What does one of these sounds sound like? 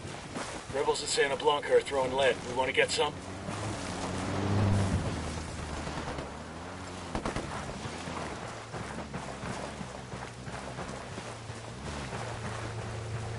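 Footsteps run over dry dirt.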